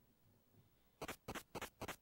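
A few short electronic blips sound in quick succession.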